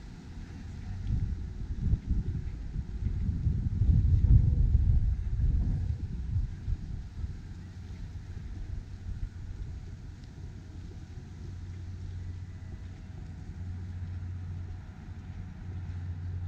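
Wind rumbles in gusts outdoors, strongest early on.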